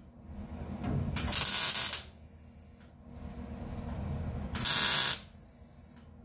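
A welding torch hisses and crackles in short bursts.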